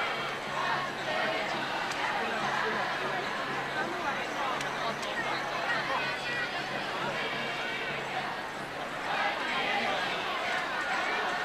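A large crowd of young women chatters outdoors.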